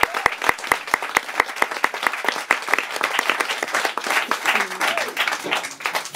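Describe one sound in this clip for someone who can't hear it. A woman plays a piano in a lively jazz rhythm.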